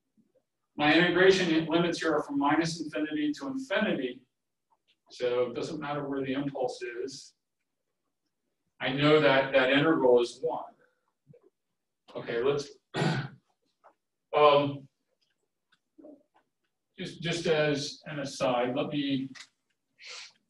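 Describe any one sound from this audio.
A man speaks calmly and steadily, explaining at a moderate distance.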